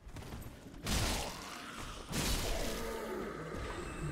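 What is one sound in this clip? A sword clangs and slashes in a fight.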